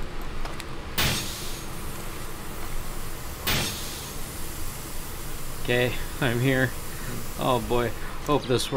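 A smoke grenade bursts and hisses.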